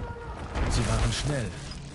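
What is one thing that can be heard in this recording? Small flames crackle.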